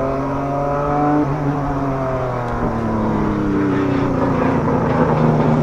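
A racing car speeds past close by with a rising and falling roar.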